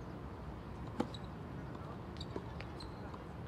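A tennis racket strikes a ball with a sharp pop.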